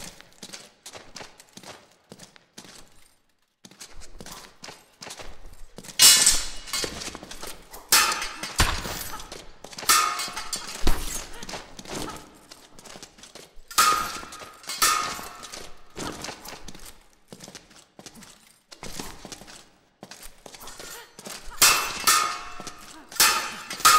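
Steel swords clash and ring in a fast fight.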